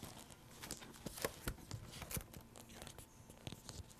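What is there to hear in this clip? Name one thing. Paper rustles and crinkles in someone's hands.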